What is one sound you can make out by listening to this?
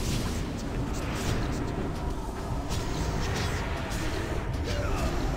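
Spell effects and weapon hits crackle and clash in a fast game battle.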